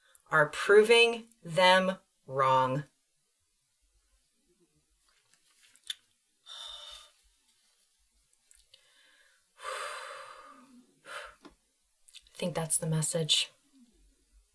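A woman speaks calmly and close to a microphone, in short phrases with pauses.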